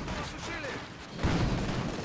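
A loud explosion booms nearby.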